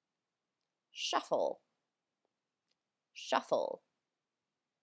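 A young woman speaks in short bursts, close to the microphone.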